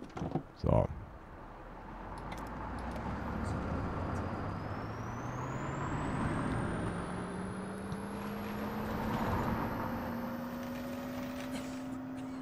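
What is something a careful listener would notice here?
A bus engine hums and rises in pitch as the bus speeds up.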